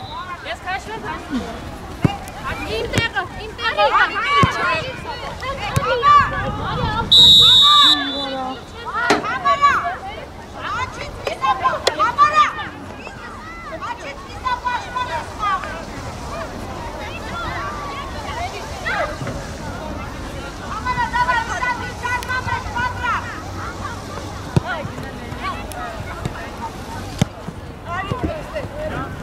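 Young women shout and call out to each other across an open field.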